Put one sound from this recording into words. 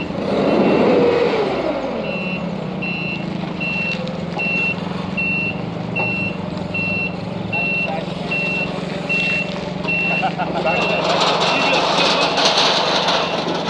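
A forklift engine hums steadily nearby.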